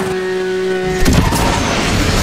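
A car lands with a heavy thud.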